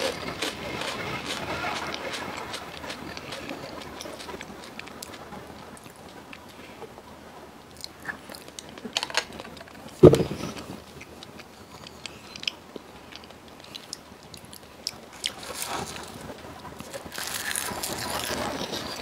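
A young woman chews food with wet crunching sounds close to a microphone.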